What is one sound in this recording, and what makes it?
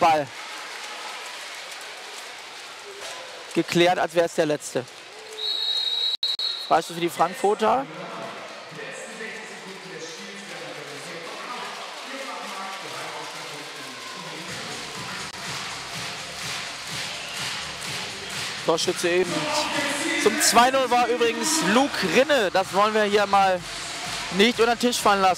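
A large crowd murmurs in an echoing indoor hall.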